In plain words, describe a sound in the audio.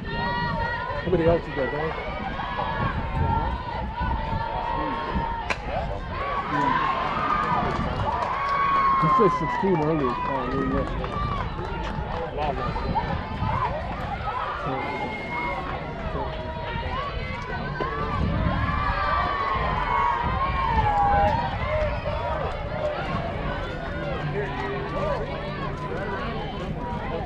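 Many people chatter and call out outdoors.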